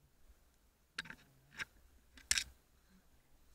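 Bare branches scrape and snap against skis.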